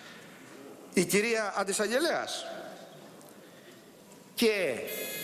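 A middle-aged man speaks forcefully into a microphone in a large echoing hall.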